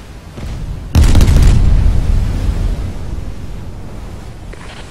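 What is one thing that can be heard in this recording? Shells explode with a deep roaring blast.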